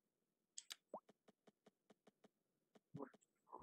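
Soft interface clicks tick at an even pace.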